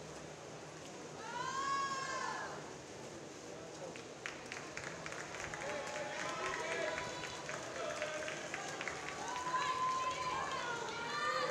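A swimmer splashes steadily through the water.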